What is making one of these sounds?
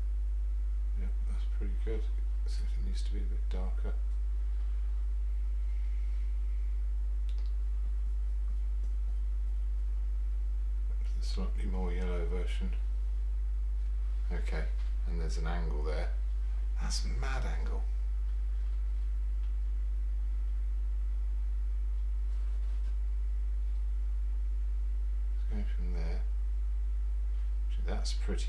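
An older man mumbles quietly to himself.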